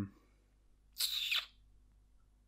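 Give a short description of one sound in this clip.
A giraffe sniffs and snorts close by.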